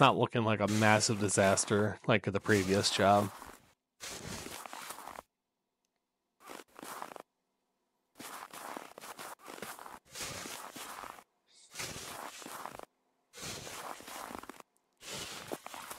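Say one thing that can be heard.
A shovel scrapes and scoops through snow in repeated strokes.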